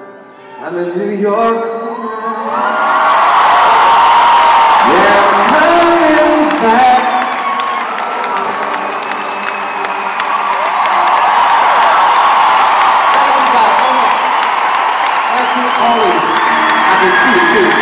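Loud live music plays through big loudspeakers.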